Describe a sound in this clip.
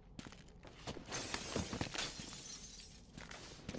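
Glass shatters and tinkles down.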